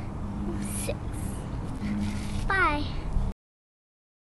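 A young girl talks close by, with animation.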